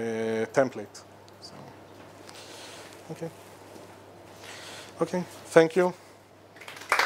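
A man speaks to an audience through a microphone.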